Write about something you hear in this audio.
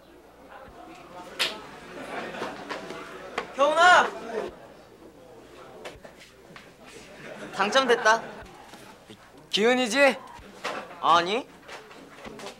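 Young men chatter and laugh loudly in a room.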